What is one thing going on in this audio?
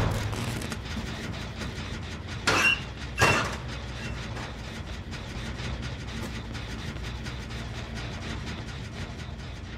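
A machine hums low and steadily.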